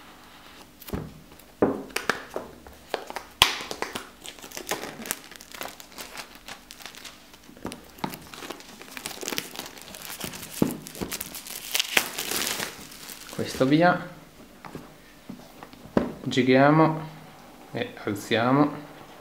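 A cardboard box taps and scrapes against a table.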